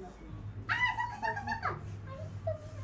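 A voice squeals high and excitedly close by.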